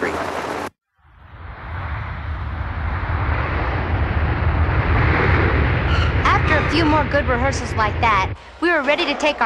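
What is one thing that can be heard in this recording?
A jet airliner's engines roar loudly as it comes in to land.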